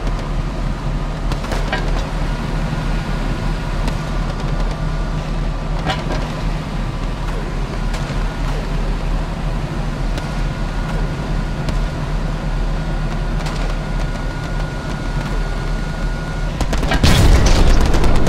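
A tank engine rumbles steadily and deeply.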